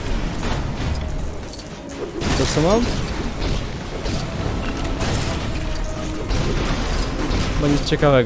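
Robots clatter and break apart with metallic crashes.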